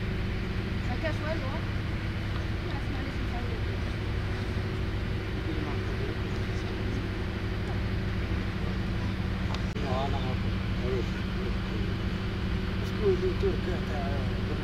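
Young men call out to each other faintly in the distance.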